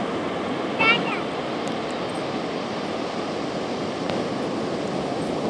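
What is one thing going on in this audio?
Surf breaks and washes onto a beach.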